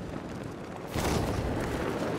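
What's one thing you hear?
A heavy thud sounds on landing.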